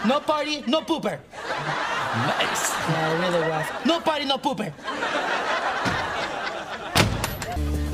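Young men talk and laugh with animation nearby.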